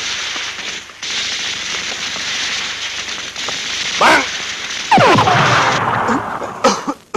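Gunshots and explosions crack outdoors.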